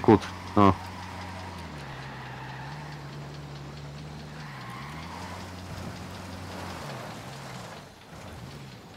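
A vehicle engine hums steadily as it drives along, rising and falling in pitch.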